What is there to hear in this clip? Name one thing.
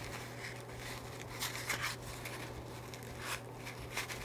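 Plastic wrapping rustles and crinkles under fingers.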